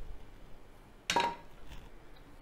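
A metal pan knocks against a metal plate.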